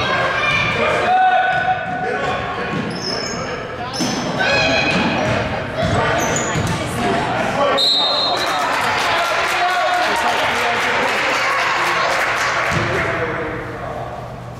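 Spectators cheer and shout loudly in an echoing hall.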